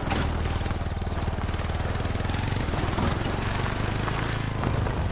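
Vehicle tyres rustle over grass and dirt.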